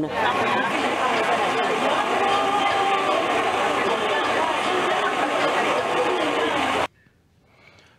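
A crowd of men and women chatter and talk over one another.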